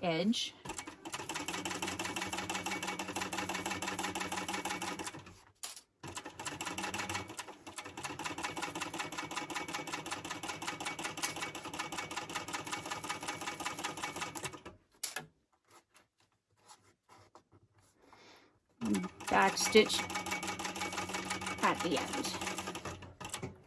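A sewing machine stitches with a rapid, steady whirring rattle.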